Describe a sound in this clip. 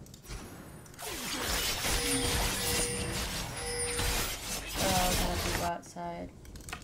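Game sound effects of a fight clash and whoosh.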